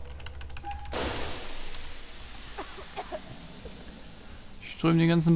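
Gas hisses loudly out of a pipe.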